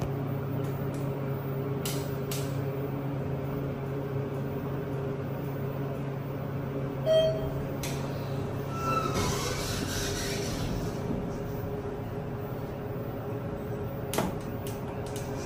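A finger clicks a metal elevator push button.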